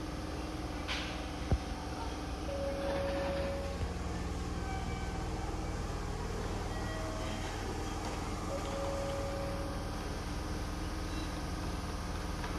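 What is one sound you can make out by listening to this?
A stopped train hums steadily.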